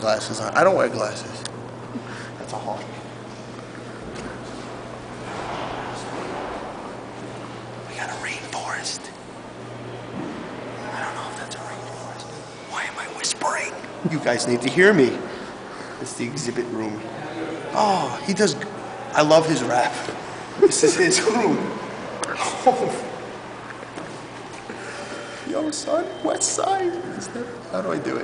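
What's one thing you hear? A young man talks casually and close by.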